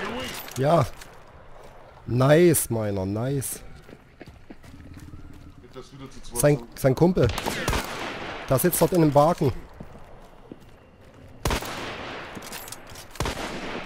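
A rifle bolt clicks and slides back and forth.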